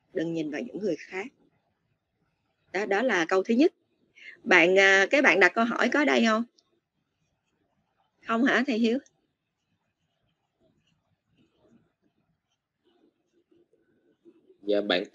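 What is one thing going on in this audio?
A woman speaks in short bursts with pauses, heard through an online call.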